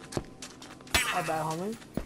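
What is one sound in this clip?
A sword slashes with a sharp swish.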